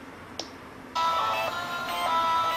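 Music plays from a phone's small speaker.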